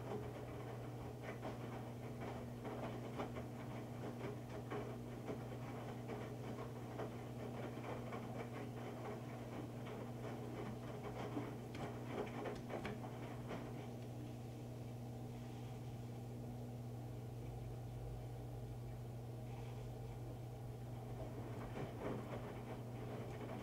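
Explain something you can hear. Wet laundry sloshes and thumps inside a tumbling drum.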